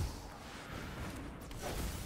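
Electric crackling bursts out briefly.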